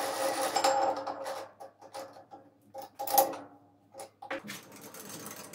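Metal parts clank and click as a chuck is tightened by hand.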